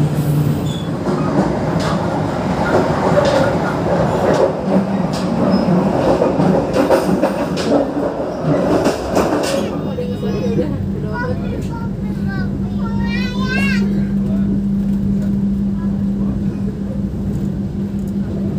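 A train rumbles and rattles along the tracks.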